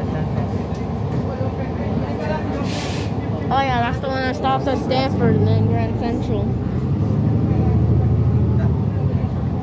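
A bus engine rumbles steadily while the bus drives along.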